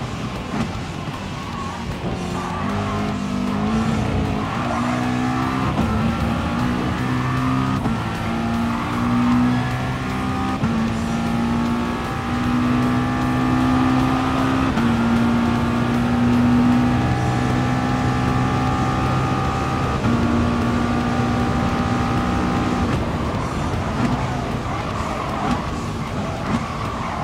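A race car engine roars, climbing in pitch and dropping with each gear change.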